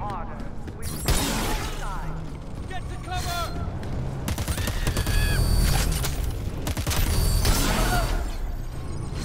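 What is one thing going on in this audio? Gunshots and explosions bang loudly.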